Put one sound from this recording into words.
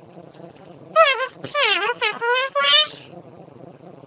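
A young girl speaks excitedly in a high voice close to a microphone.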